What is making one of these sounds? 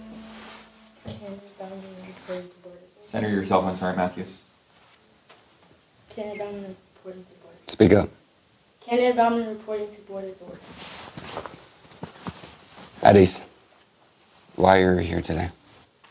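A young woman speaks loudly and formally in a room.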